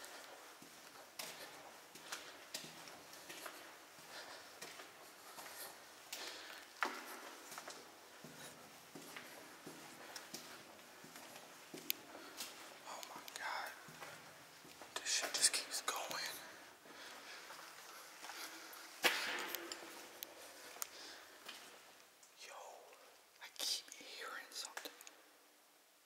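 Footsteps crunch and scuff on a gritty floor, echoing off hard walls.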